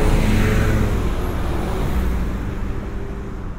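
A delivery truck drives past close by.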